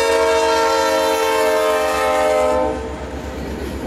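Train wheels squeal loudly against the rails.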